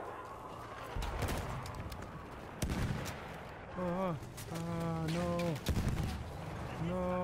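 Explosions boom in the distance.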